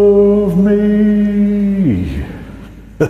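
A woman sings a long, held note close to a microphone.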